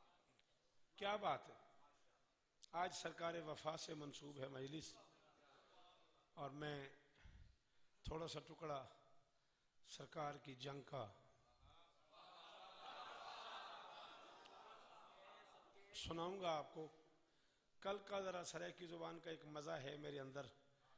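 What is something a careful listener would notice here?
A man speaks with passion into a microphone, his voice loud and echoing through loudspeakers.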